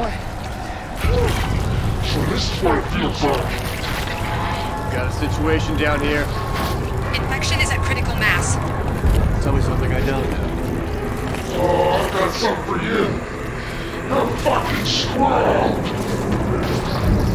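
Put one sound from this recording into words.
Wet flesh squelches and bubbles as it melts.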